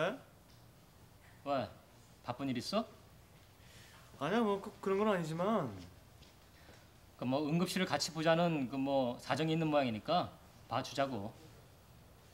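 A middle-aged man talks calmly on a phone, close by.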